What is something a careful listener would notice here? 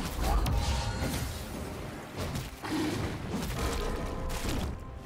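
Magic blasts and hits crackle and thud in a fast fight.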